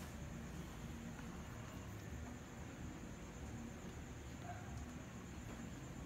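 A paintbrush dabs and brushes softly on paper.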